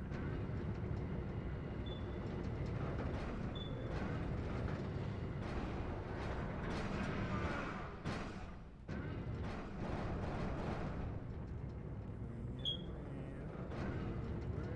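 A heavy mechanical arm hums and whirs as it moves.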